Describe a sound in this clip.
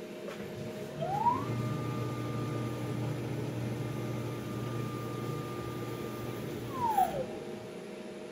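A motor whines up in pitch, holds steady, then winds back down.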